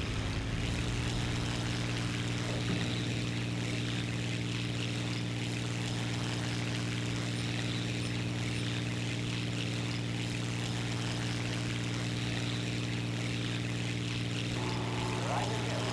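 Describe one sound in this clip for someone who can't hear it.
A propeller plane's engine drones steadily throughout.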